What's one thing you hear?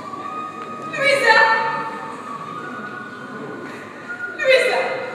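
A woman cries out in distress.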